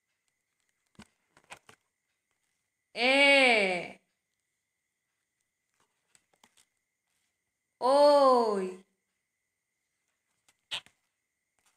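Paper pages flip over with soft rustles.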